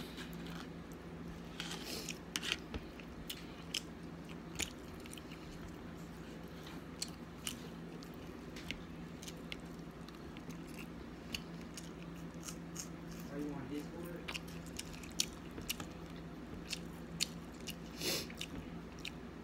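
A fork scrapes and clicks against a plate.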